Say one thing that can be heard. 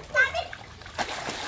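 A young child squeals loudly nearby.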